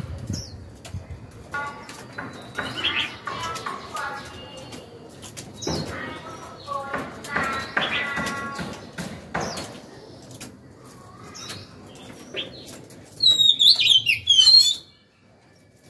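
A caged bird chirps and warbles up close.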